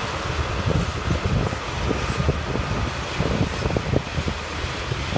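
A long freight train rumbles and clatters steadily along the tracks nearby.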